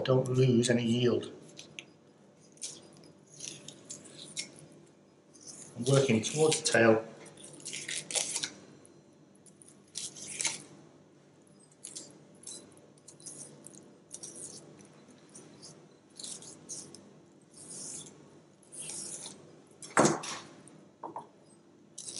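A knife scrapes and slices along fish bones.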